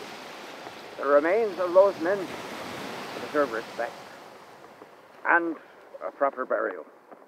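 An elderly man speaks calmly through a television speaker.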